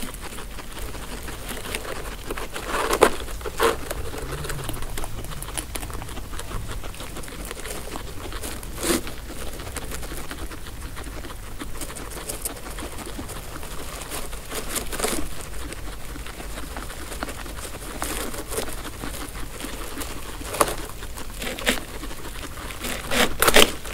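Guinea pigs munch and crunch on dry hay up close.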